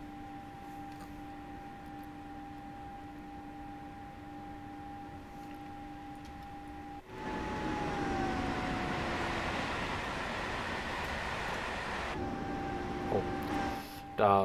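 An electric train motor hums steadily from inside the cab.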